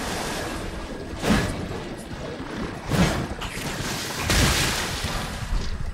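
Metal weapons clash and strike with sharp hits.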